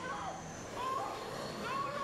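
A young woman gasps in fright.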